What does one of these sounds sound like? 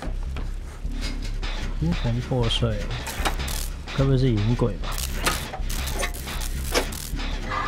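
A metal machine clanks and rattles as it is worked on.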